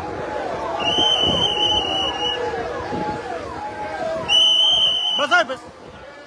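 Car horns honk in long blasts.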